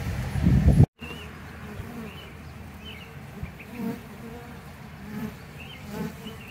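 Bees buzz softly up close.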